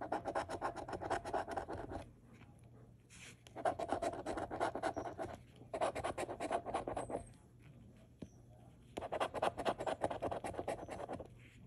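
A coin scratches rapidly across a scratch card in short bursts.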